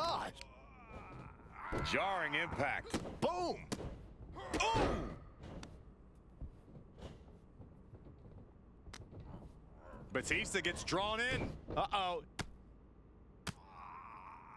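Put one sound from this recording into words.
Sharp thuds of blows and bodies hitting a mat ring out now and then.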